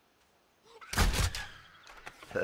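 A crossbow fires with a sharp twang.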